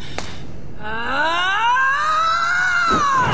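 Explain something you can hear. A shimmering magical tone swells and bends up and down.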